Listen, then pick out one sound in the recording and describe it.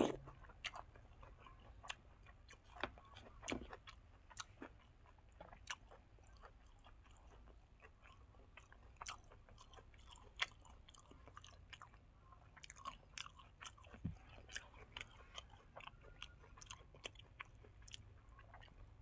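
A young man chews and smacks his lips loudly, close by.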